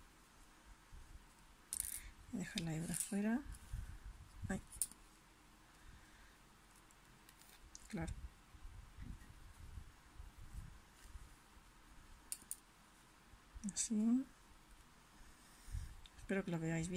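Yarn rustles softly as it is handled and pulled through with a needle.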